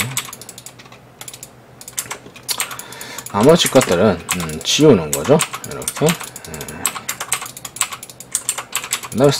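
Computer keys and a mouse click in quick bursts.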